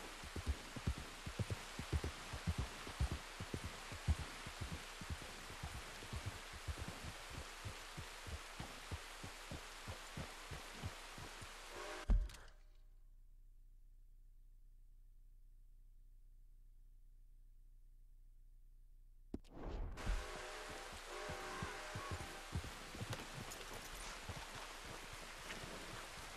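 A horse's hooves thud rapidly at a gallop.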